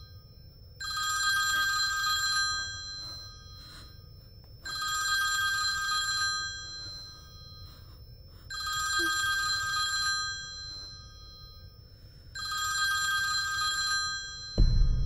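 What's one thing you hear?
A phone rings loudly in repeated bursts.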